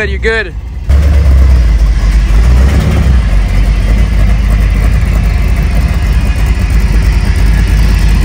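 A vehicle engine revs loudly up close.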